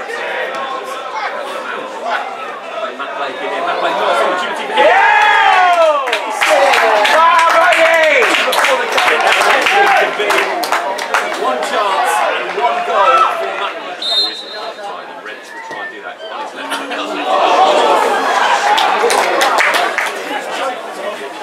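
Players shout to each other across a football pitch outdoors.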